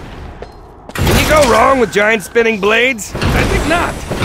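A magical trap bursts into life with a loud crackling whoosh.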